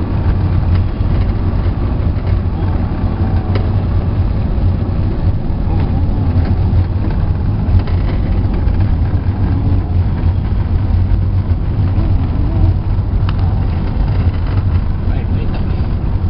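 A car engine drones, heard from inside the car.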